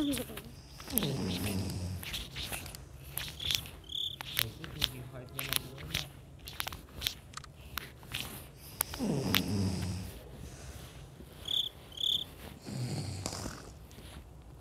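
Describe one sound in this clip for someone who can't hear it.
A cartoon cat snores loudly in slow, deep breaths.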